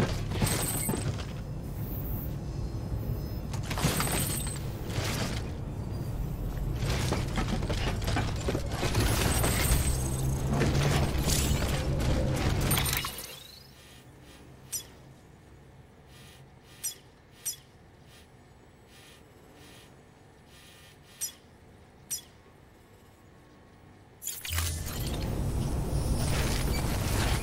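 Heavy footsteps crunch over rough ground.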